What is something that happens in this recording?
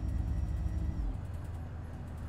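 An automatic gearbox shifts up and the diesel bus engine note drops.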